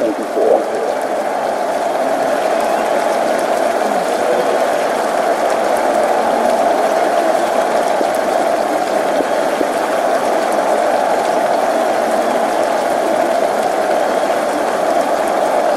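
A large stadium crowd roars and murmurs steadily throughout.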